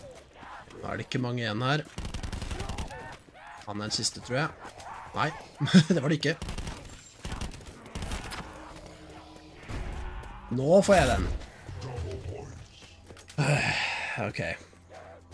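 Zombies growl and groan.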